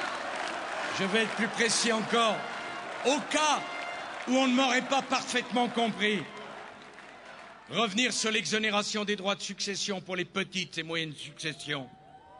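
A man speaks forcefully into a microphone over loudspeakers, echoing outdoors.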